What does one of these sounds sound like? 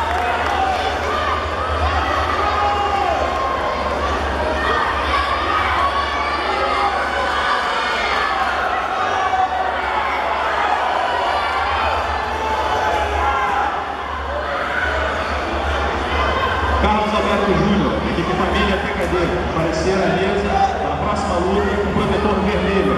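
A crowd chatters throughout in a large echoing hall.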